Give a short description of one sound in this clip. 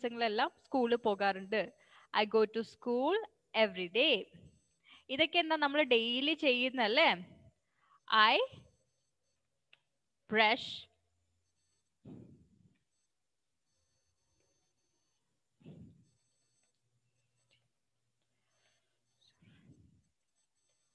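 A woman speaks slowly and clearly over an online call, pausing between phrases.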